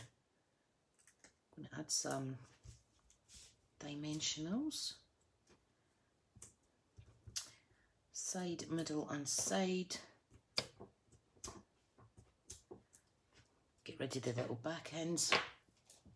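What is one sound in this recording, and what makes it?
Paper card rustles and taps as hands handle it.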